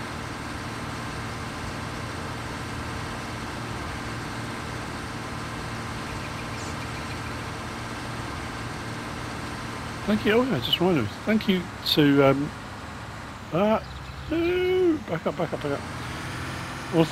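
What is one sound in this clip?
A harvester engine hums steadily.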